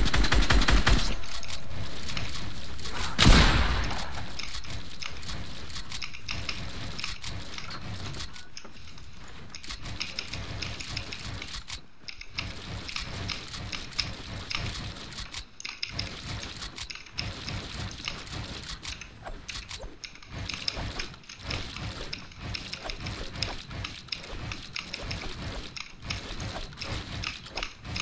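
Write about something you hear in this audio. Wooden building pieces clatter quickly into place over and over.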